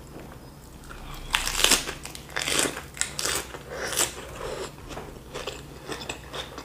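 A woman chews crunchy food noisily close to a microphone.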